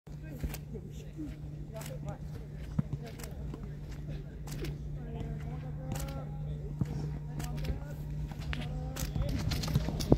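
Footballs thud as they are kicked on grass.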